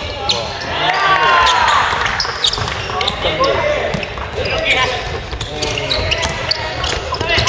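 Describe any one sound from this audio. Young players shout and call out to each other across the court.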